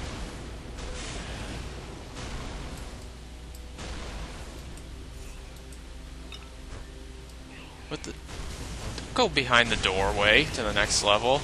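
Electric bolts crackle and zap in bursts.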